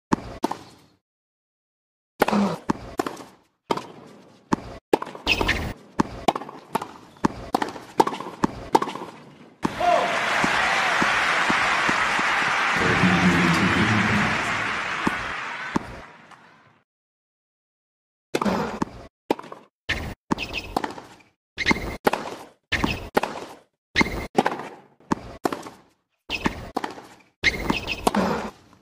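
Tennis rackets strike a ball back and forth in a steady rally.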